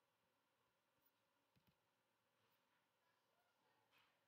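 A computer error chime sounds once.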